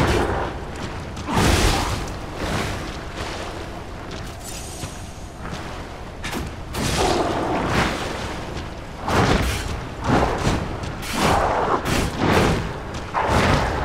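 Weapon blows strike a monster with heavy thuds.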